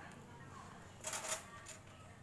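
Metal tools clink against each other.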